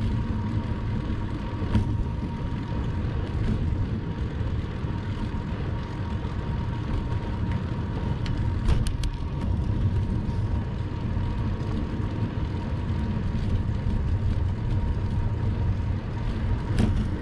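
Wind rumbles steadily against a moving bicycle.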